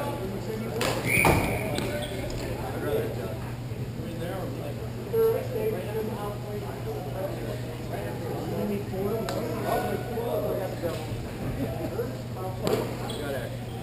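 Sticks click and clack against a ball and each other.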